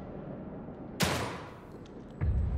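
A pistol fires a single loud shot that rings briefly in an echoing room.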